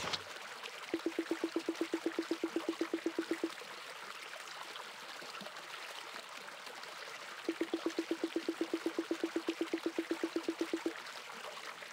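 A game plays a rapid run of short, evenly spaced blips.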